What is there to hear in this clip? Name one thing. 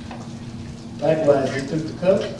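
A man speaks loudly through a microphone in a large echoing hall.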